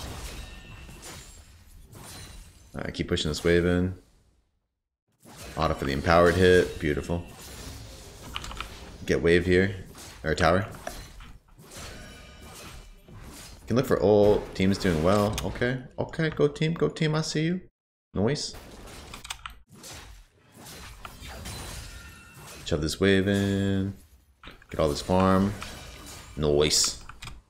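Game sound effects of clashing and spell blasts play.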